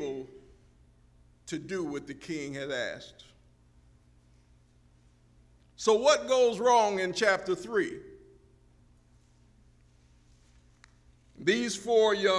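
A man speaks into a microphone in a large room, pausing between phrases.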